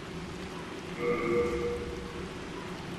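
A bright menu chime rings out.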